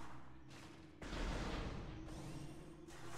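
An explosion booms and crackles.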